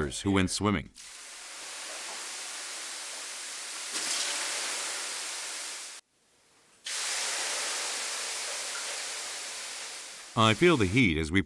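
Water splashes onto hot stones and hisses loudly into steam.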